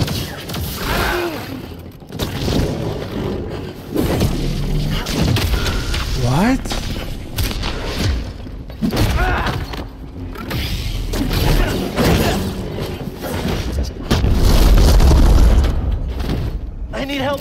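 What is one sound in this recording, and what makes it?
Blasts and impacts boom in a game.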